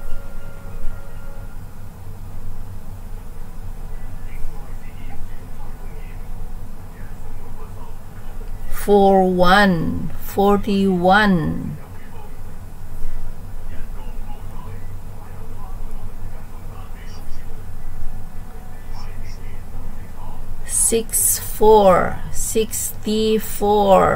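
A middle-aged woman speaks over an online call.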